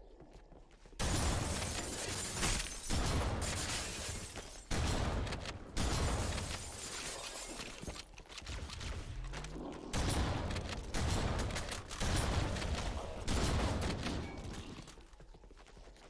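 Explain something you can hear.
Rapid video game gunfire rattles in loud bursts.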